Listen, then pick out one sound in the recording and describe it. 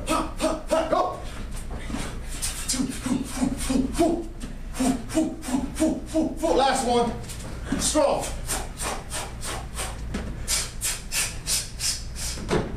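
Gloves strike punch mitts in quick rhythmic bursts.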